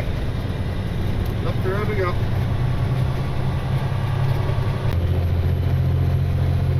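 A truck engine drones low and steady inside the cab.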